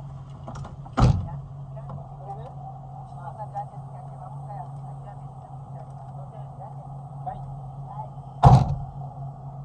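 A car door slams shut with a heavy thud.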